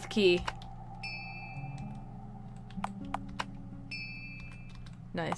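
Soft electronic chimes blip.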